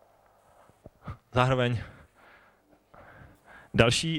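A man speaks into a microphone through loudspeakers in a large room, lecturing with animation.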